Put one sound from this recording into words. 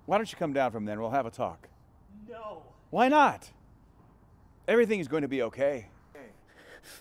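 A middle-aged man speaks earnestly, close by.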